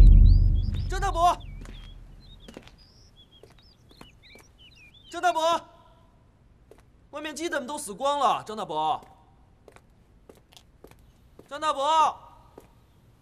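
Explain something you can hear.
A young man calls out loudly.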